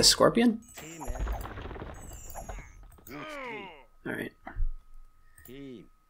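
Swords clash and clang in a small battle.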